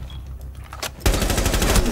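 Rapid gunfire rattles loudly and close.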